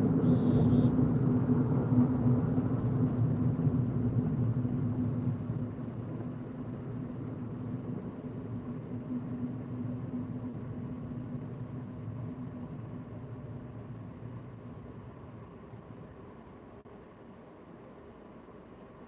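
Road noise rumbles steadily inside a moving car, then fades as the car slows to a stop.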